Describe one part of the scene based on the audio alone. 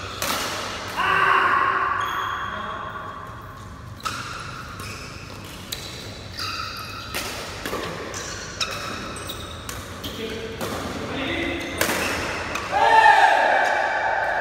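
Shoes squeak on a hard court floor, echoing in a large hall.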